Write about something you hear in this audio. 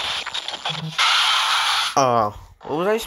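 A monster lets out a loud, harsh screech.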